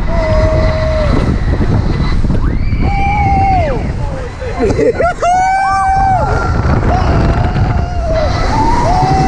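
Young riders scream with long, high cries.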